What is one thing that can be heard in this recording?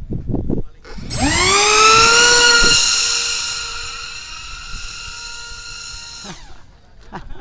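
A model jet engine screams past overhead, rising then slowly fading.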